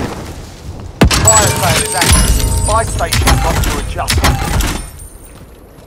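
A supply crate creaks open with a chiming jingle.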